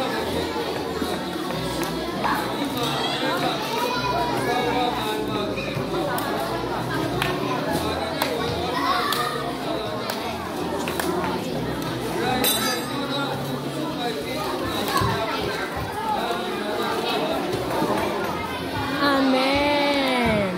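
Children chatter and murmur nearby.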